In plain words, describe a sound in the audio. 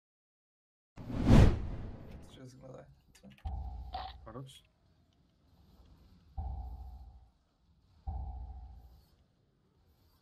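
Magic spells boom and whoosh in a fantasy battle.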